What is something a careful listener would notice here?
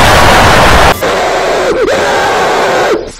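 Loud static hisses and crackles.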